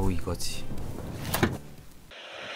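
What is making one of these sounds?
A car's tailgate swings down and shuts with a thud.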